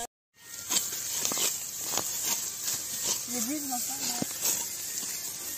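A sickle slices through dry crop stalks with sharp rustling cuts.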